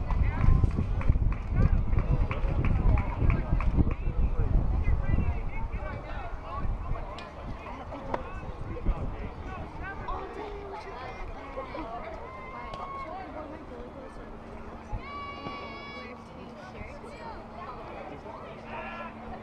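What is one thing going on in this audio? Distant players and spectators call out across the field.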